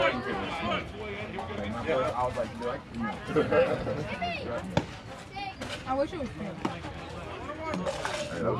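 Men and women shout and call out across an open field.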